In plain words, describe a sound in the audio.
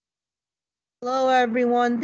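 A man speaks calmly into a phone through an online call.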